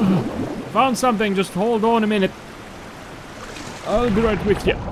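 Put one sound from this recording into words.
Rushing water roars steadily.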